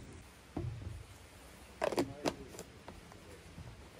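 A cap is screwed onto a flask with a few clicks.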